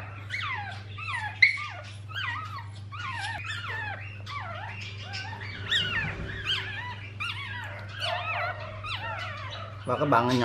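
A small baby animal squeaks and chirps repeatedly in high, quick calls.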